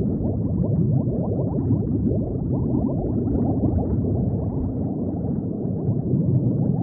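Bubbles burble steadily underwater.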